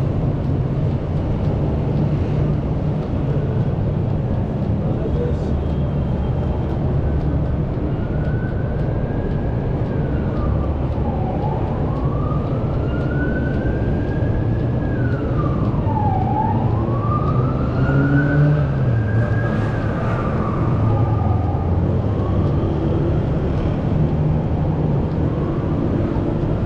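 Footsteps tap on a paved walkway.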